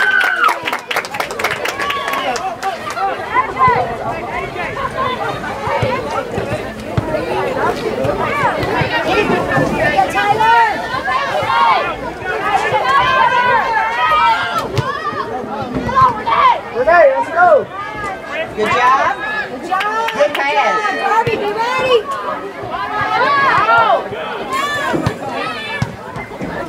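Young women shout and call out across an open field.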